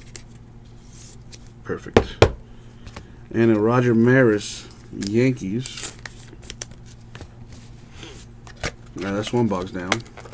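Trading cards rustle and click as fingers shuffle through them.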